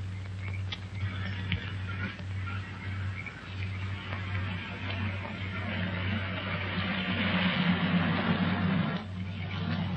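A car engine approaches along a road, growing louder.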